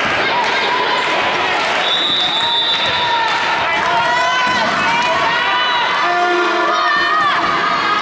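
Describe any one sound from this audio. Players call out to each other in an echoing hall.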